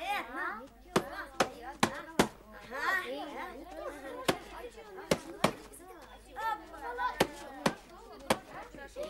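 Boxing gloves thump against a heavy punching bag.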